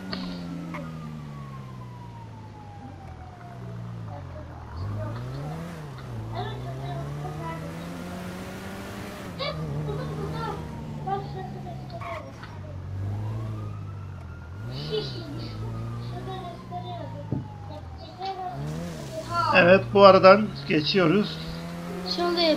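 Car tyres screech on pavement while drifting.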